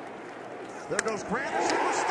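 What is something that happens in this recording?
A bat cracks as it hits a ball.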